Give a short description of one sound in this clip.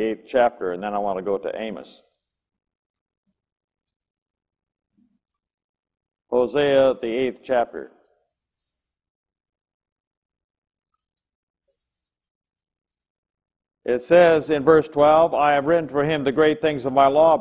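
An elderly man speaks calmly into a microphone, reading out in pauses.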